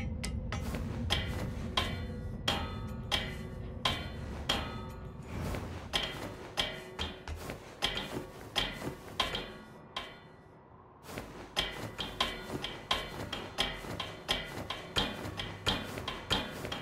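Footsteps clank on metal ladder rungs during a climb.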